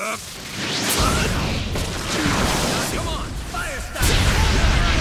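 Explosions roar and rumble.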